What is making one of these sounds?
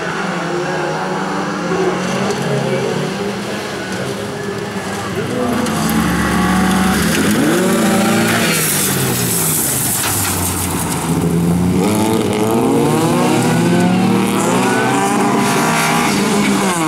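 Several race car engines roar and rev loudly nearby.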